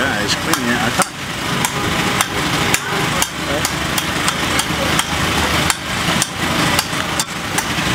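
A metal tool clinks sharply against hard shell.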